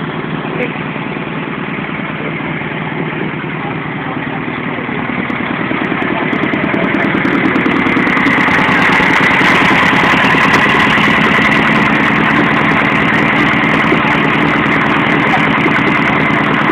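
A small car engine idles with a loud, rattling, throbbing exhaust that grows louder.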